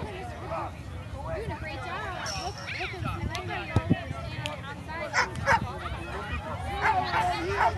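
Young children shout and squeal outdoors.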